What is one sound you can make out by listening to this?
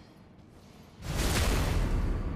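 A heavy blow lands with a loud, rushing crash.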